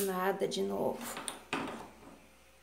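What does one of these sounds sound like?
A stove knob clicks as it is turned.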